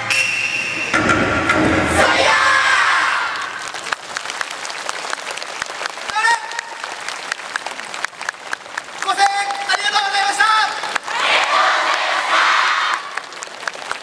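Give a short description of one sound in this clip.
A large group of dancers shouts in unison.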